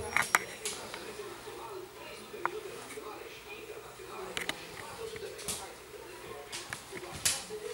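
A hand pats and rubs a dog's fur.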